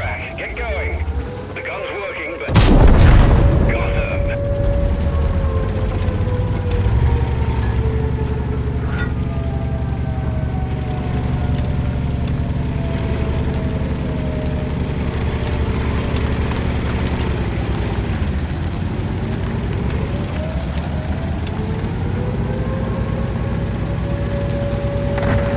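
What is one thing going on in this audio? A tank engine rumbles and whines steadily as the tank drives.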